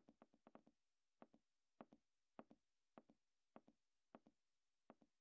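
Footsteps fall in a quick, steady rhythm.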